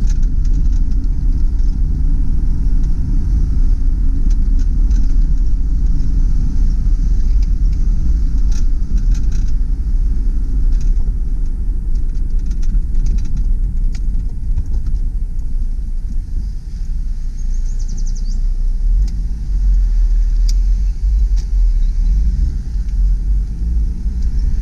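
A car engine hums low and steady from inside the cabin.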